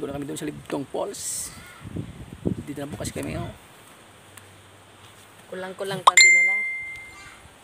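A middle-aged man talks close to a phone's microphone.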